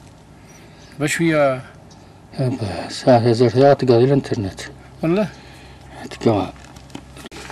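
A middle-aged man speaks close by, calmly.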